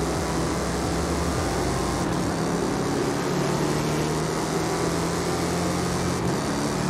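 A car engine roars and revs higher as it speeds up.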